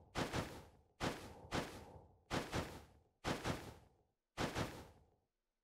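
Short whooshing bursts sound again and again as a game character leaps and dashes.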